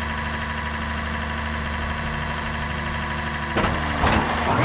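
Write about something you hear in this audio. A racing car engine idles with a low steady rumble.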